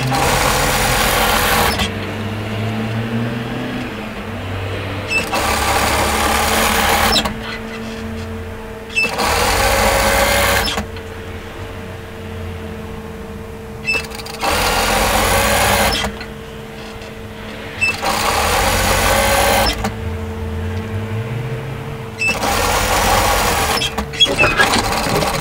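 A sewing machine runs in quick bursts, stitching fabric with a fast whirring rattle.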